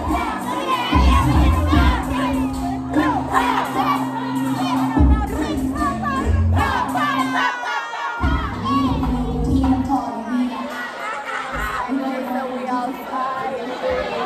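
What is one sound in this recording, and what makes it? Young women shout and cheer excitedly up close.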